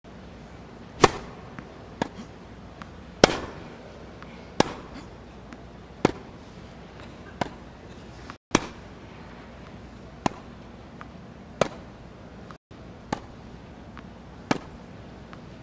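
A tennis ball is struck back and forth with sharp racket hits.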